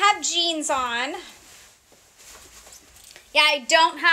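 Fabric rustles as a woman shakes out a dress.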